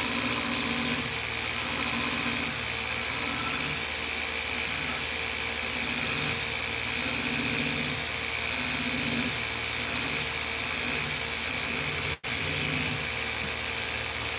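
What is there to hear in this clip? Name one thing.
Sandpaper rubs back and forth on a wooden handle.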